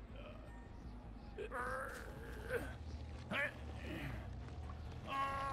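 A middle-aged man talks into a microphone with animation.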